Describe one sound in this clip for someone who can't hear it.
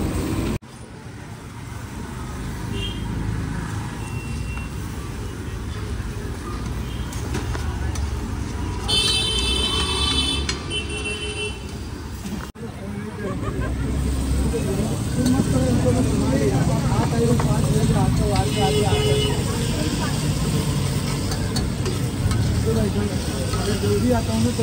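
A metal spatula scrapes and clatters against a griddle.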